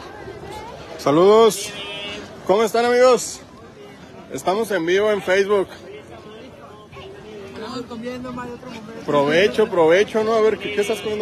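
Young men talk and laugh loudly close by.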